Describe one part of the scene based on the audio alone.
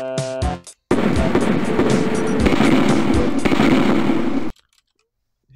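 Loud explosions rumble and crackle.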